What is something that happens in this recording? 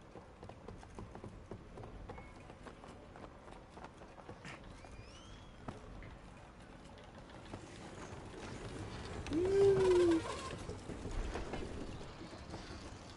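A small cart rattles along a wooden track.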